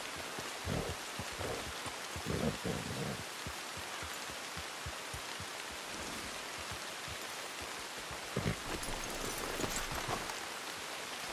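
Horse hooves thud on a dirt path.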